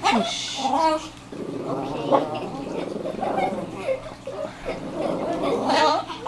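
A small dog yaps in short bursts.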